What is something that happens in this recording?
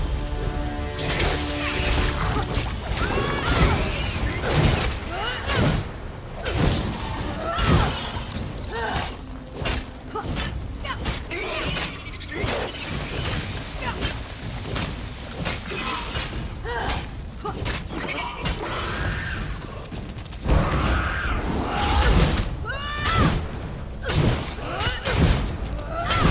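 Weapons strike and clang in a fight.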